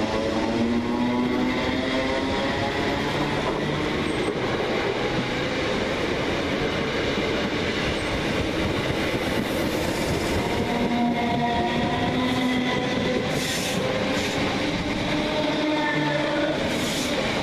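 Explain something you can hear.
A train roars past close by with a loud, steady rumble.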